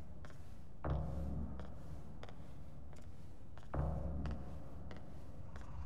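Footsteps tap steadily on a hard floor in an echoing hallway.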